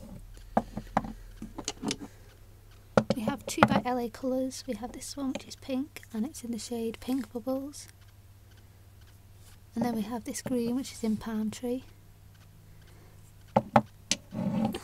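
Small glass bottles clink and tap on a hard surface.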